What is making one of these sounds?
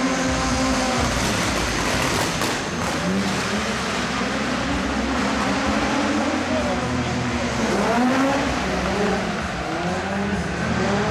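Car engines rev loudly and whine in a large echoing hall.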